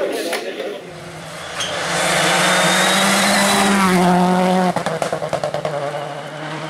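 A rally car engine roars loudly as the car speeds past.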